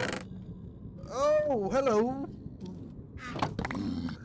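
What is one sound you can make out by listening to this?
A wooden chest lid creaks and thuds shut.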